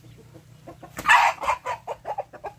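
A chicken squawks sharply as it is grabbed.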